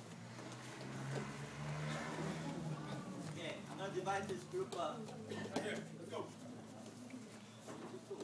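Children chatter in a large echoing hall.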